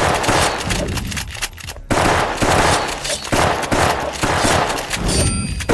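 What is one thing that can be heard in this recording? A blade swooshes and clashes in a fight.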